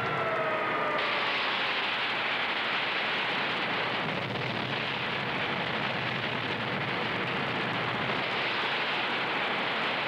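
Rocket engines roar loudly and steadily.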